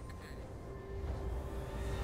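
Magic spells crackle and clash in a fight.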